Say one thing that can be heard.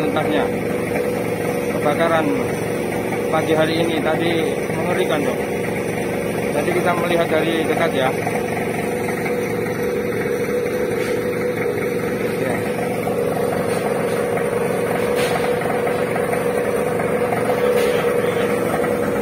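A fire truck's engine idles steadily.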